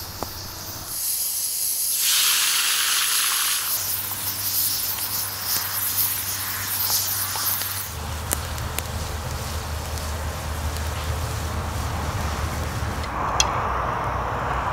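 Oil sizzles and spits loudly in a hot pan.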